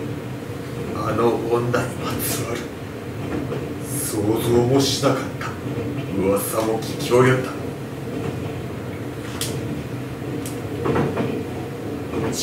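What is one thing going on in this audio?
An elderly man reads aloud calmly, in a room with some echo.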